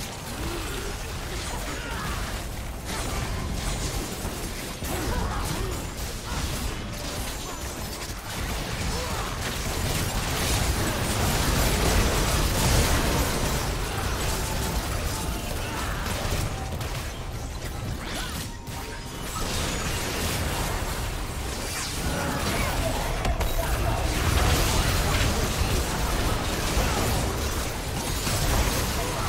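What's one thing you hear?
Game spell effects whoosh, zap and explode in a busy fight.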